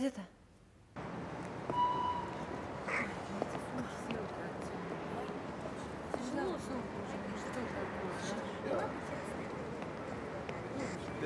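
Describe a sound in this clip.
Crowd chatter and bustle fill an outdoor platform.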